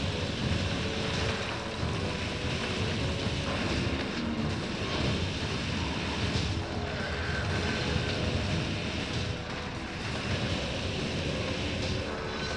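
Video game combat effects clash and burst.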